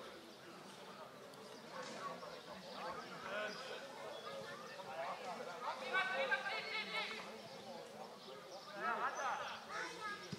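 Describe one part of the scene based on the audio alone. Men shout to each other across an open field, some distance away.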